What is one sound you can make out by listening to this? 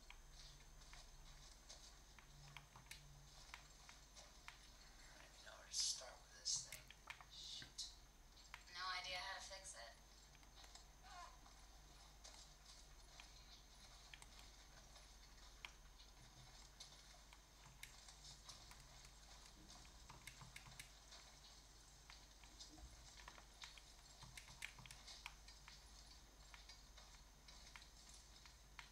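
Buttons click softly on a handheld game console.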